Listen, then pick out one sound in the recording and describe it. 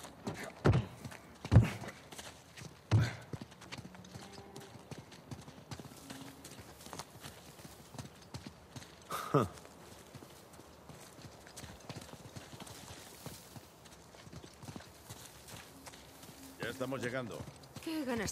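Footsteps run across stone paving.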